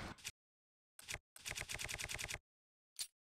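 Quick menu clicks tick in a rapid run.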